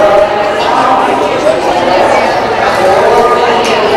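A middle-aged woman announces calmly through a microphone and loudspeaker.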